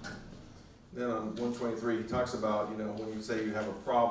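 A middle-aged man reads aloud calmly through a microphone.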